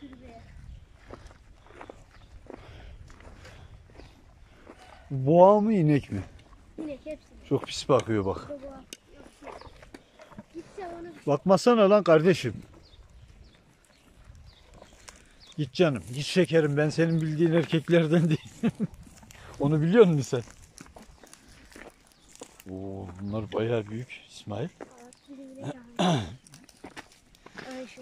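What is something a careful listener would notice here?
Cows tear and munch grass close by.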